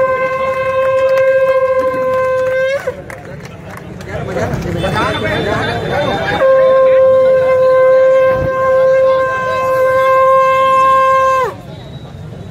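A whistle blows with a long steady shrill note.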